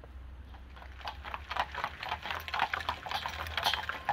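Carriage wheels roll along a road.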